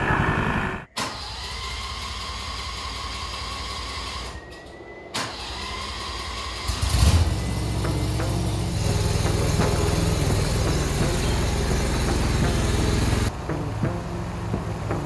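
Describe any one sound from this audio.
A compact loader's engine idles, then rumbles louder.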